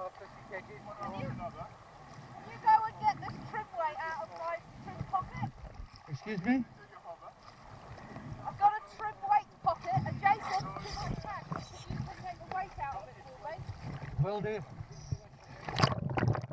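Water splashes and laps at the surface.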